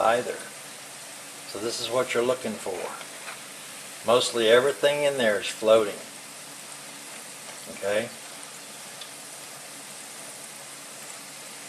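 Oil sizzles steadily in a frying pan.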